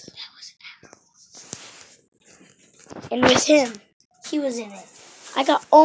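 A boy talks loudly and with animation close to the microphone.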